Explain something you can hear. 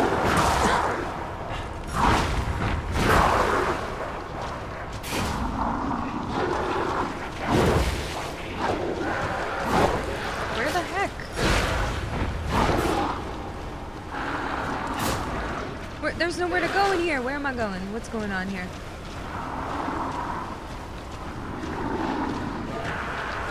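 A young woman talks calmly and close to a microphone.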